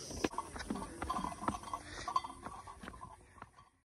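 Footsteps tap along a brick path.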